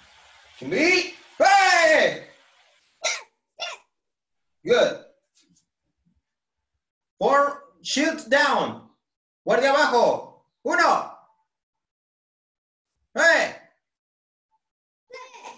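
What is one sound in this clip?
A young man speaks in short, lively phrases into a nearby microphone, with pauses between them.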